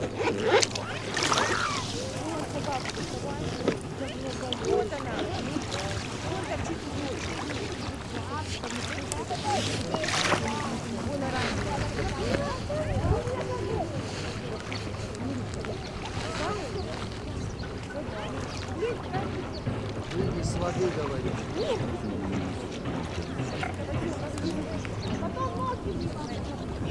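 Small waves lap gently on a pebble shore.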